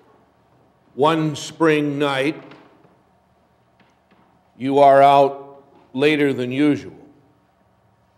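A middle-aged man sings short phrases in an echoing hall.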